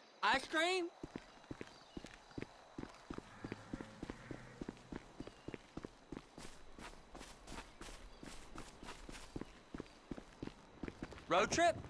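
Footsteps run quickly on a gritty road.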